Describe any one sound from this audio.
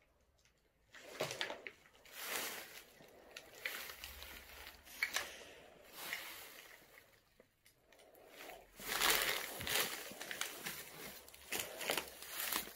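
Debris crunches and rustles underfoot.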